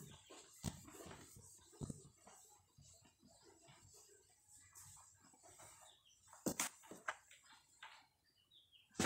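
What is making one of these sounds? A cloth rubs across a whiteboard.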